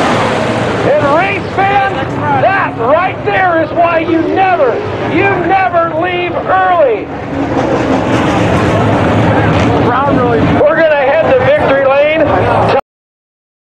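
A crowd of men and women shouts and cheers nearby.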